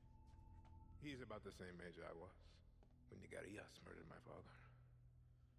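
A man speaks calmly and seriously, close by.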